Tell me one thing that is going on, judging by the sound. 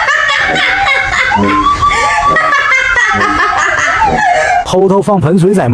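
A young man laughs loudly.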